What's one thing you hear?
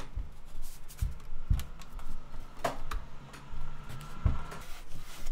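Fingers tap and press on a plastic laptop case.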